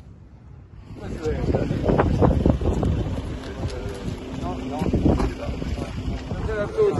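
Men talk and greet one another close by, outdoors.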